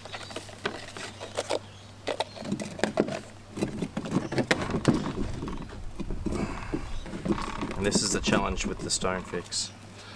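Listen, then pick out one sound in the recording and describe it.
Rocks knock and scrape on a wooden board.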